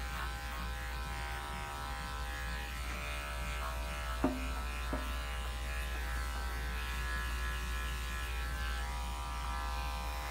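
Electric clippers buzz steadily close by.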